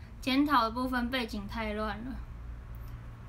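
A young woman speaks close to a microphone in a high, animated voice.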